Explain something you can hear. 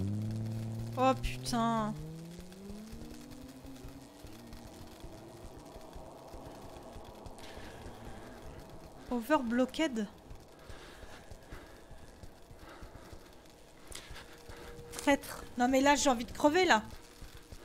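A young woman speaks close to a microphone in short bursts.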